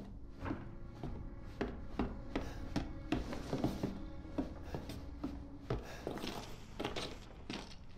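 Footsteps thud steadily on a wooden floor.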